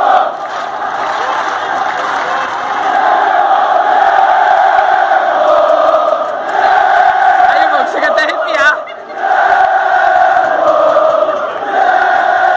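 A large crowd chants and sings loudly outdoors.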